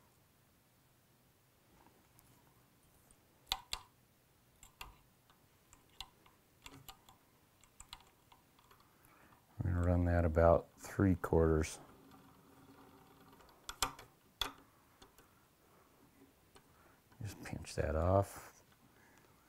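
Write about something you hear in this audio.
Fine thread ticks and rustles softly as it is wound.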